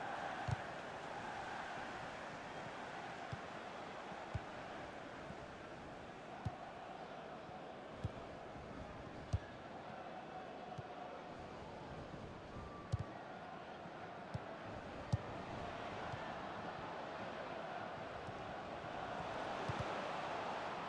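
A football is kicked with dull thumps, again and again.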